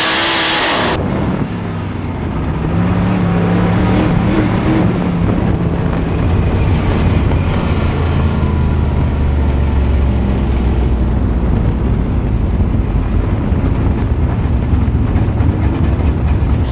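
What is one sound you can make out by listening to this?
A race car engine roars loudly from inside the car and rises and falls in pitch.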